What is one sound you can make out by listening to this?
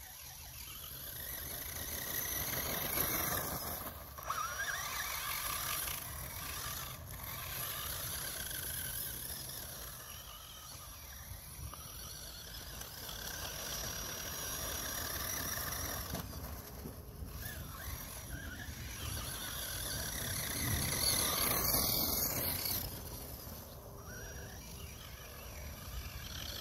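Tyres of a toy car crunch over grass and sandy ground.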